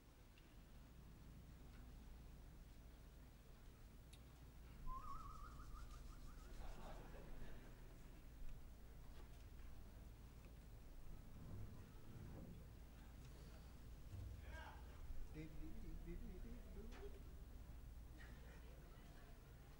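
A man talks to an audience through a microphone.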